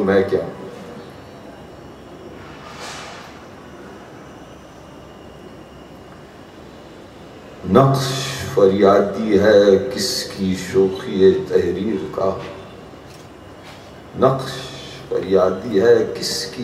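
An elderly man reads aloud slowly and calmly into a microphone, with long pauses.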